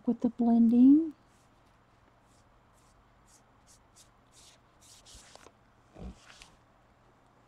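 A paper towel rubs and crinkles over a smooth surface.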